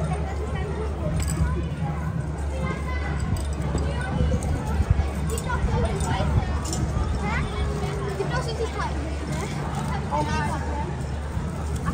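Children and adults chatter in a crowd outdoors.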